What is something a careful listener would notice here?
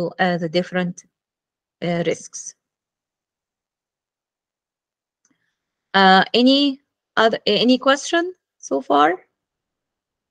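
A woman speaks calmly through an online call, in short phrases with pauses.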